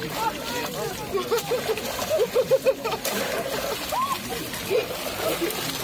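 Water splashes as a woman plunges into icy water.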